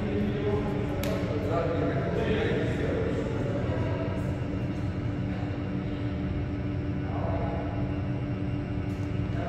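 A racket strikes a shuttlecock with a sharp pop.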